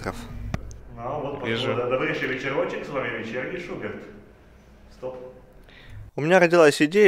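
A young man speaks in a relaxed voice nearby.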